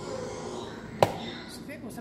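A rubber stamp thumps onto paper.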